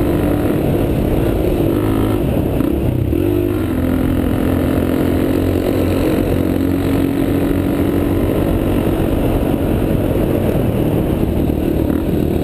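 A dirt bike engine revs and drones up close.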